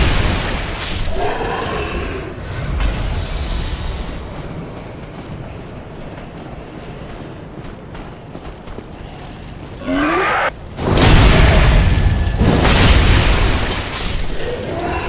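Sword blows clash and strike.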